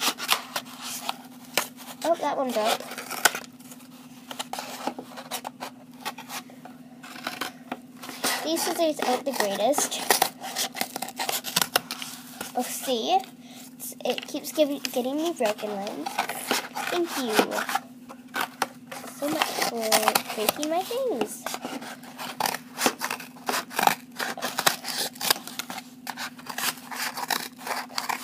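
Cardboard rustles and crinkles in someone's hands.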